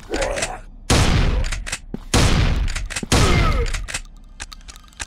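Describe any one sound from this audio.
A shotgun fires in loud blasts that echo.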